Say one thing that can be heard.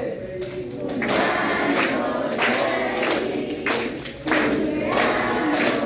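A group of children shout together in loud bursts.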